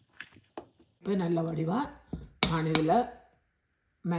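A spoon scrapes and clinks against a glass bowl.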